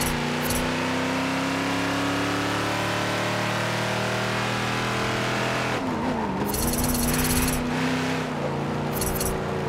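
A car engine hums steadily, dipping in pitch briefly as the car slows and then picking up again.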